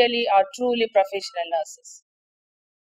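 A middle-aged woman speaks calmly and close up.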